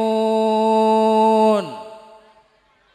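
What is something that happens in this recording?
A middle-aged man sings a long held note through a microphone and lets it fall away.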